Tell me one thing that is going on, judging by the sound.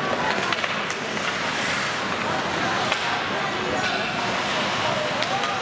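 Skate blades scrape and hiss across the ice in a large echoing hall.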